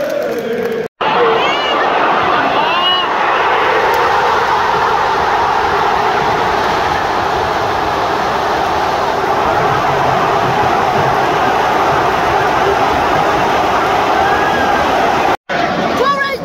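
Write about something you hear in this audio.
A huge stadium crowd roars and cheers.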